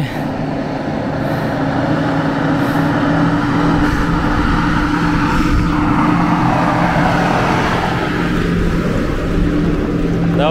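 Tyres crunch on gravel as cars roll closer.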